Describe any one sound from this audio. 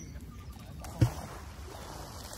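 A weight splashes into the water.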